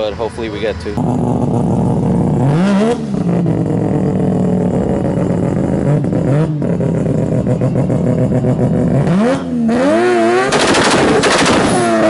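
A car engine idles loudly with a rough rumble.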